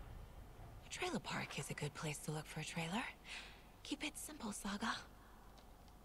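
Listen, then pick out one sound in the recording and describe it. A woman's voice speaks calmly from a game.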